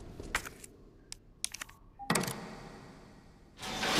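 A small object clicks into a metal slot.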